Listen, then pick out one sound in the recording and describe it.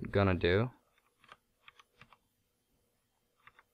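A video game menu beeps softly as selections are made.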